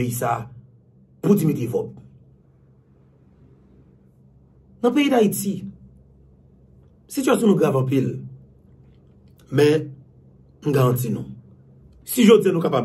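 A man speaks calmly and close to a microphone, in short bursts with pauses.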